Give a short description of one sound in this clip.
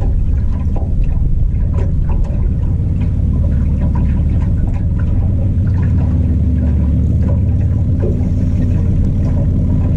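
Water laps against the side of a small boat.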